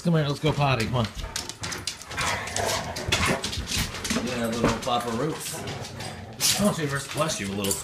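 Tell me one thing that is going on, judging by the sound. Dog claws patter on a wooden floor.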